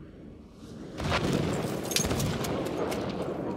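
Metal parts clack as a gun is reloaded.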